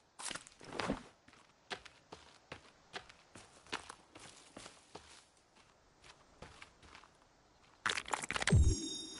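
Footsteps crunch through grass and undergrowth.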